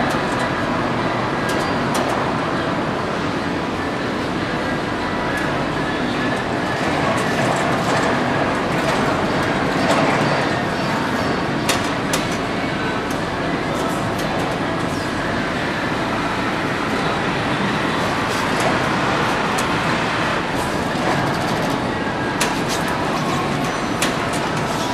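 Heavy machinery rumbles and hums steadily nearby.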